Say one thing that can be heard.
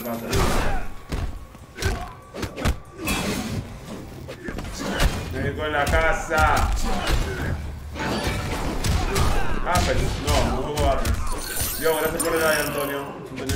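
Punches and kicks thud and crack in a video game fight.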